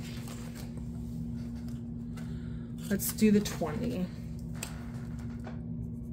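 Paper banknotes crinkle as they are handled.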